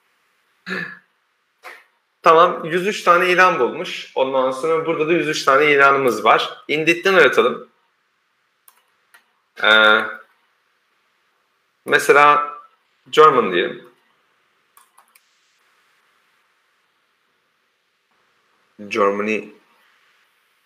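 A man speaks calmly over an online call, in short bursts with pauses.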